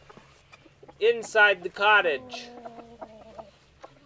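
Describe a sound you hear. A rooster crows loudly.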